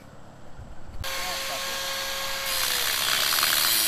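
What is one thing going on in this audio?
An angle grinder whirs loudly and grinds against metal.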